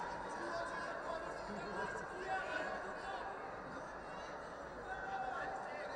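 Spectators whistle and shout now and then.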